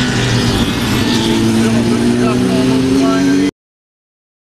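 A motorcycle engine whines as it accelerates out of a bend.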